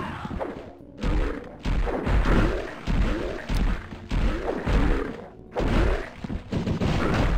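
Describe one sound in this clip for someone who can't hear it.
An axe swings and strikes with heavy, fleshy thuds.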